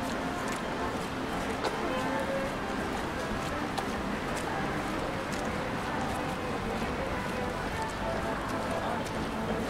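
Footsteps walk at a steady pace on a paved path outdoors.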